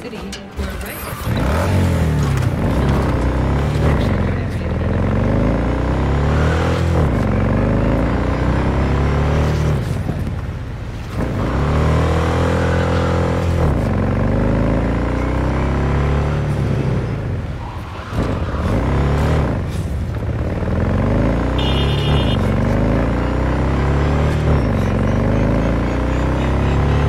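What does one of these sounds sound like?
A motorcycle engine roars loudly, revving up and dropping as it shifts through the gears.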